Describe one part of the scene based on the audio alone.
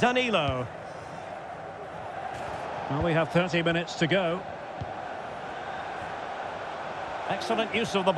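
A stadium crowd roars steadily in the background.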